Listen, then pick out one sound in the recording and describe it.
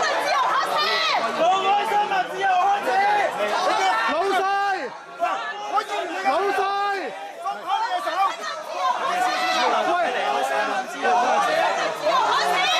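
A middle-aged man shouts angrily nearby.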